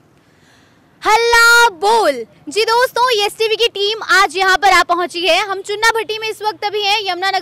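A young woman speaks with animation into a close microphone, outdoors.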